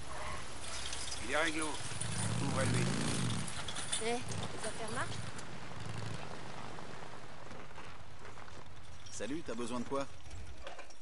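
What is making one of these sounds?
A young man talks calmly into a headset microphone.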